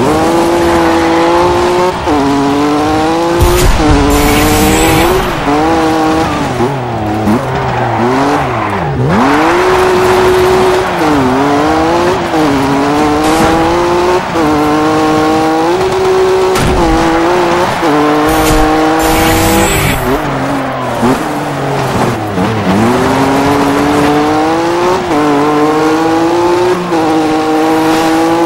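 A rally car engine revs hard, rising and dropping in pitch as the gears shift.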